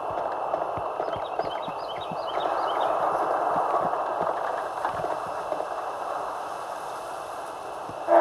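Footsteps patter quickly on pavement and grass.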